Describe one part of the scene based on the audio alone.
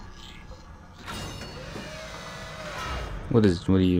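A heavy metal door slides open with a hiss.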